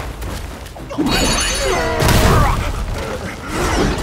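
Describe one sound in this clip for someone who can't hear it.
A creature growls and roars.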